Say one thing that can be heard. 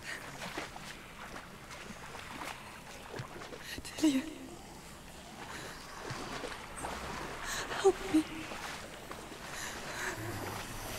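Water sloshes as someone wades slowly through it.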